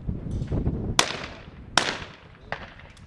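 A shotgun fires two loud shots that echo across open ground.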